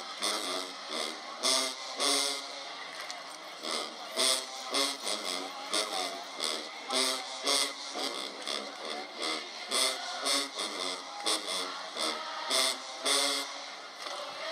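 A marching band plays loud brass with pounding drums.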